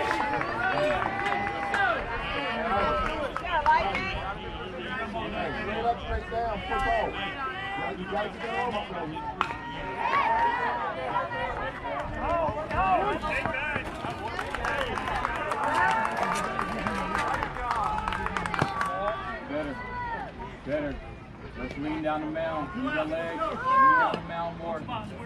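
A crowd of spectators chatters and calls out across an open field.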